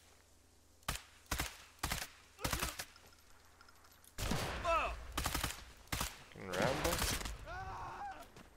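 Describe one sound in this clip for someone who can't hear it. Rifle shots crack in quick succession.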